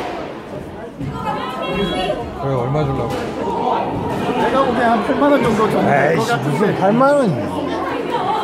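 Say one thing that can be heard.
A woman talks close by in an echoing court.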